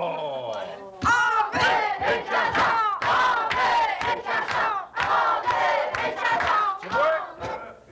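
A group of people laugh and cheer.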